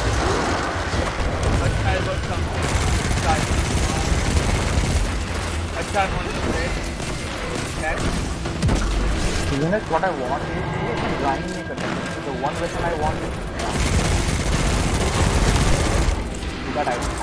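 Gunfire blasts rapidly in a video game.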